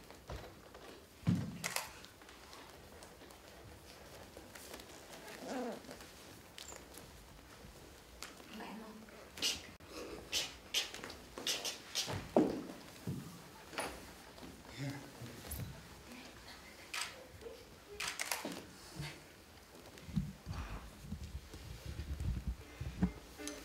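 Bare feet shuffle and pad on a hard floor.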